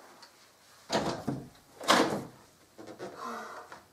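A door opens.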